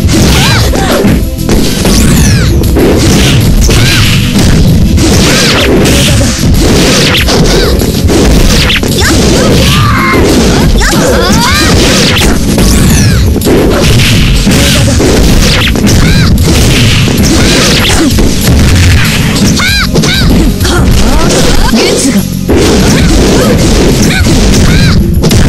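Game hits and sword slashes crack and thud rapidly.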